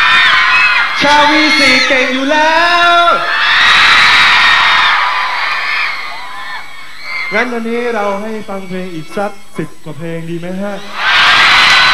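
A young man sings loudly into a microphone over a loudspeaker.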